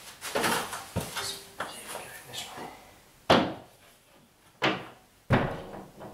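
A man climbs onto a stepladder, with knocking footsteps on its steps.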